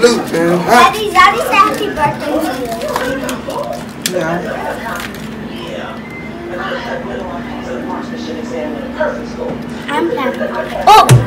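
Children and adults chatter and talk nearby.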